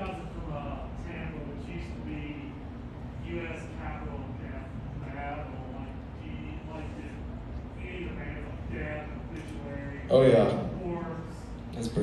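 A man talks calmly through a microphone in a large hall.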